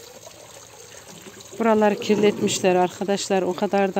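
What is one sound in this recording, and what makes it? Water pours from a spout into a plastic bottle.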